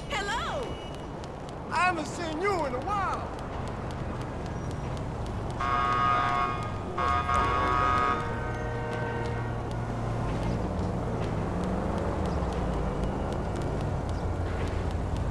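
Footsteps in high heels tap quickly on pavement.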